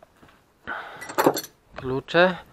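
Metal tools clink against each other on a wooden table.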